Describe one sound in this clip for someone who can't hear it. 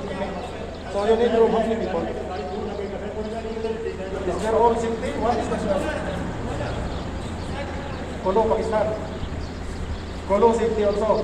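A man talks on a phone nearby.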